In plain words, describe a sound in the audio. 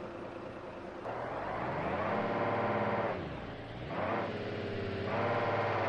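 A bus engine roars and rises in pitch as it accelerates.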